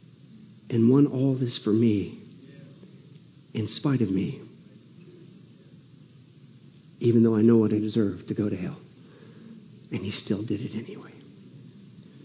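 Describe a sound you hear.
A middle-aged man speaks with emphasis through a microphone, in short phrases with pauses.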